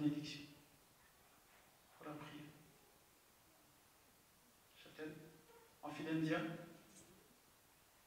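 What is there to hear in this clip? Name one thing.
A man speaks in short bursts through a microphone and loudspeakers, in a large echoing hall.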